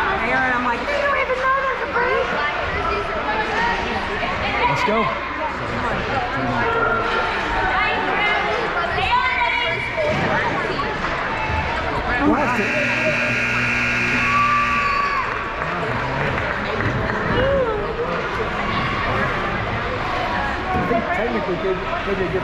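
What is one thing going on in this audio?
Children shout to each other in a large echoing hall.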